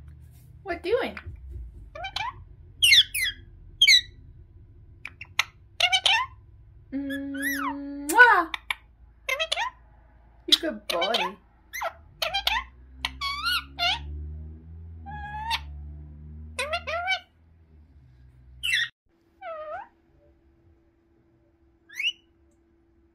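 A parrot squawks, chirps and whistles close by in short bursts.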